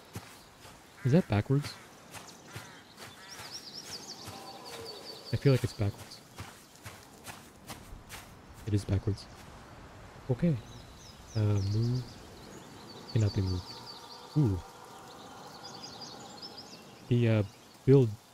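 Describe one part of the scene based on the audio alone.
A young man speaks casually into a close microphone, in short bursts.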